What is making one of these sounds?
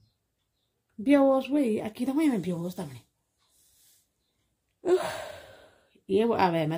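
A middle-aged woman speaks with feeling, close to the microphone.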